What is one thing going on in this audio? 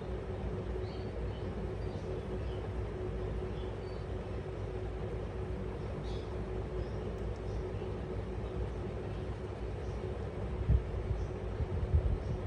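A small parrot chirps softly and briefly, close by.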